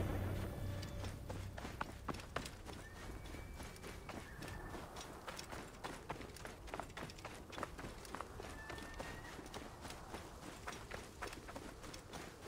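Footsteps run quickly over dry ground and grass.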